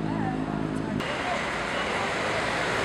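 A crowd of men murmurs and calls out close by.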